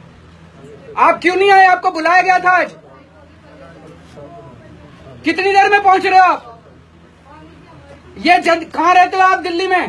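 A middle-aged man talks on a phone close by, speaking firmly in bursts.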